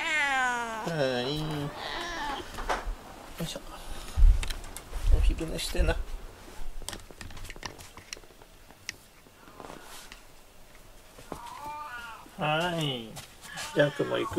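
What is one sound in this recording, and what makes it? A cat meows loudly several times, close by.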